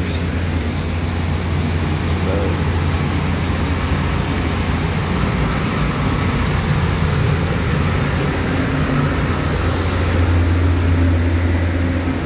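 A motor hums steadily and loudly nearby.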